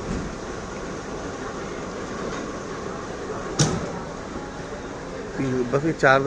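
A fuel pump hums steadily as it dispenses fuel.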